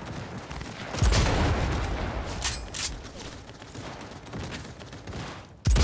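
A heavy rifle fires loud booming shots that echo away.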